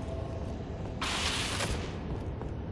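A weapon is picked up with a short, loud hissing burst.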